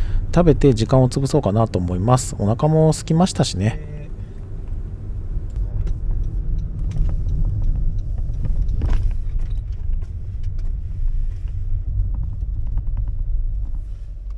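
Tyres roll on the road.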